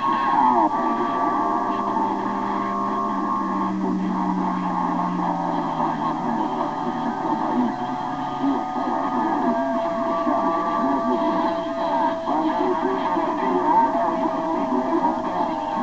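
Static hisses from a radio receiver's loudspeaker.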